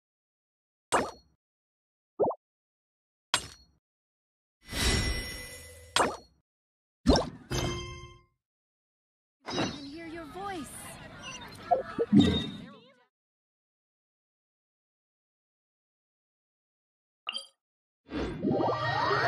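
Short chimes and whooshes of a game menu sound as options are picked.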